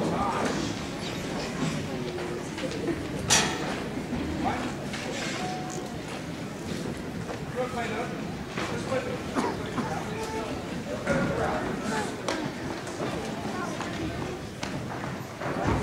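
A drum kit plays a jazz beat with cymbals and snare.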